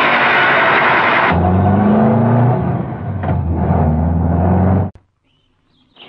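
A bus engine rumbles close by.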